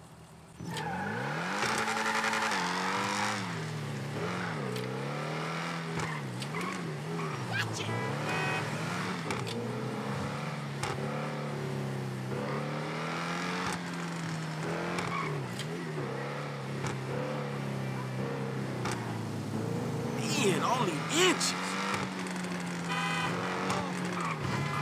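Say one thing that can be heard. A sports car engine revs up and down through gear changes.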